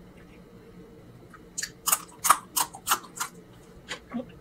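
A woman crunches on a fresh chili pepper.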